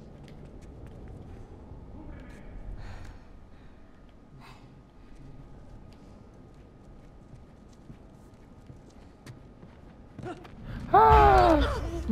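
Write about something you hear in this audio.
Footsteps creep across a hard floor.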